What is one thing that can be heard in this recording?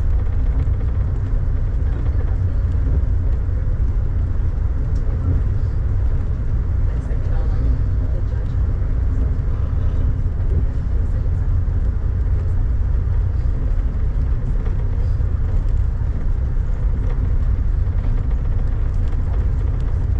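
Rain taps lightly on a window.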